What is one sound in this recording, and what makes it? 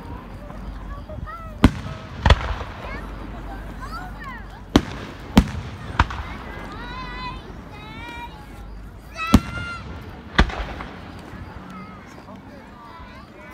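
Rockets whistle as they shoot upward.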